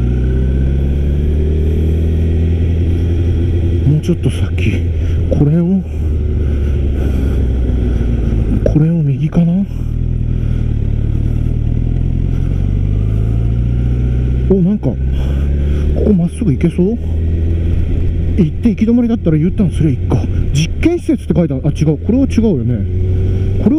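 A motorcycle engine hums steadily at low revs.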